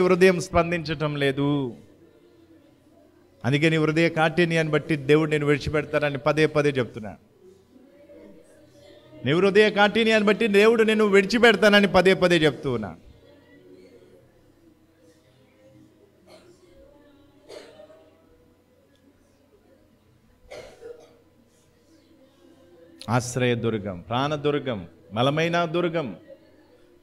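A man sings slowly into a microphone, in long held phrases with pauses between them.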